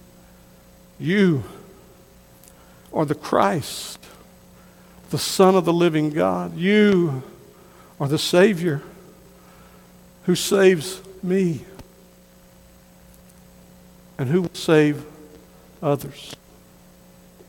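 A middle-aged man preaches with emphasis through a microphone, in short bursts with pauses, in an echoing hall.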